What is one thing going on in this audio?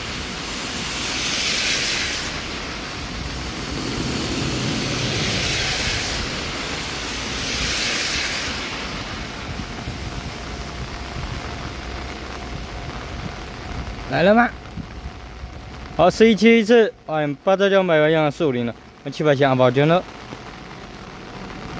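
Light rain falls outdoors.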